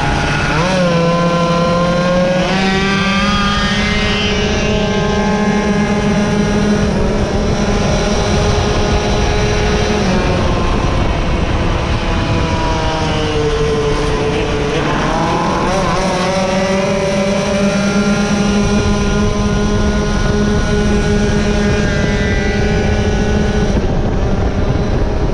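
A motorcycle engine roars close by, revving up through the gears.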